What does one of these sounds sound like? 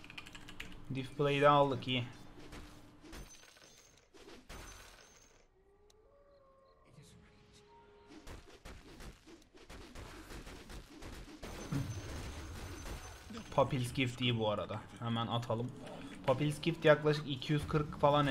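Game battle effects clash and crackle in the background.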